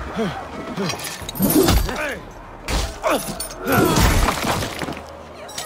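Blades strike with heavy, sharp thuds.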